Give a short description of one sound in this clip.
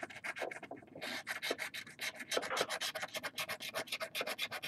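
A coin scratches rapidly across a scratch card.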